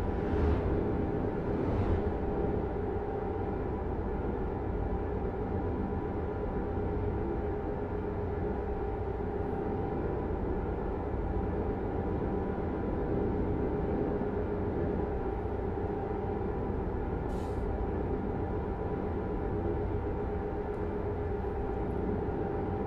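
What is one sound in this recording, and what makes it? Tyres roll on a smooth road.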